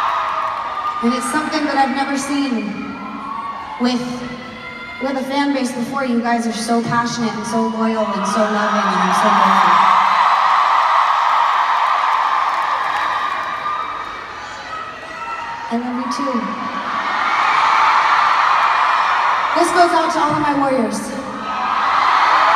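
A young woman speaks into a microphone, heard through loudspeakers in a large echoing arena.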